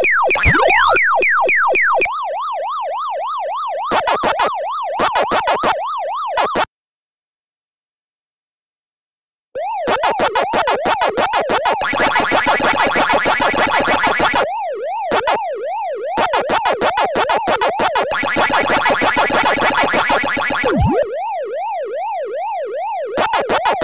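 Electronic game sound effects warble and chirp in a fast, repeating pattern.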